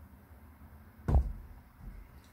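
A metal can thuds down onto a table.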